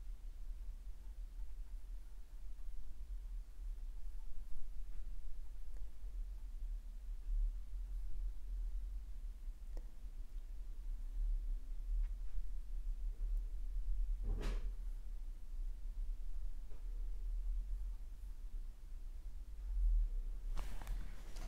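A paintbrush softly scrapes across a canvas.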